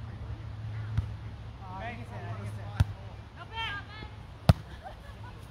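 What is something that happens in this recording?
A volleyball thumps off a player's hands.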